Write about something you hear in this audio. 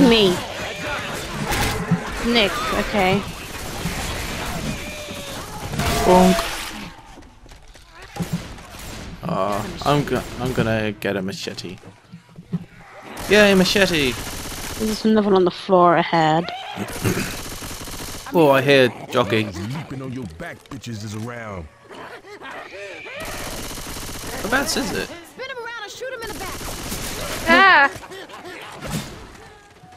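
A young woman talks and laughs over an online call.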